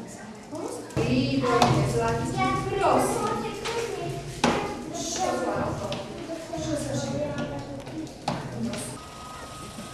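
A woman speaks calmly to a class of children.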